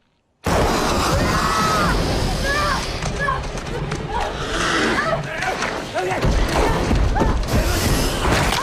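A young woman gasps and pants in fear.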